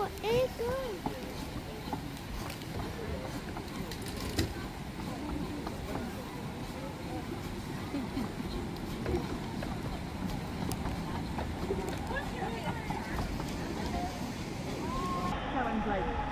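Train wheels clatter along the rails and fade into the distance.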